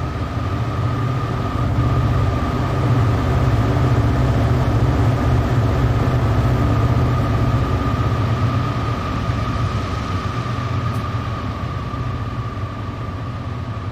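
Diesel locomotives rumble loudly across a bridge and slowly fade.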